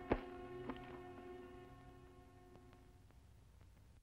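A piano plays a few ringing notes.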